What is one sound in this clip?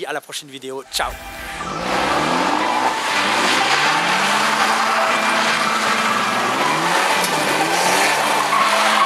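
A car engine revs.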